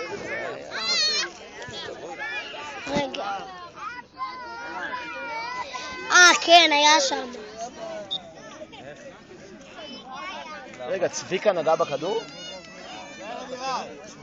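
A crowd of people chatter and shout nearby outdoors.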